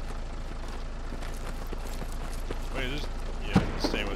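An armored vehicle's engine rumbles as it drives past close by.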